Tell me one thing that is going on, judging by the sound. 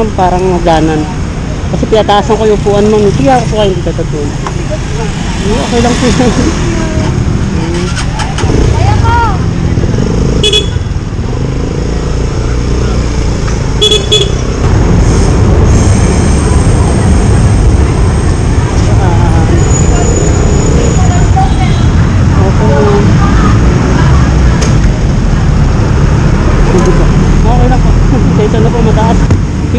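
A motor scooter engine hums and rumbles as it rides along.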